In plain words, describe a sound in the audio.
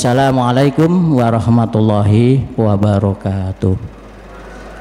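A middle-aged man speaks through a microphone with a chanting, melodic voice.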